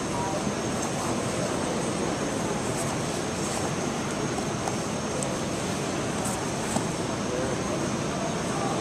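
A crowd of spectators murmurs in a large hall.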